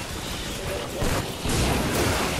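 A loud crash of lightning strikes.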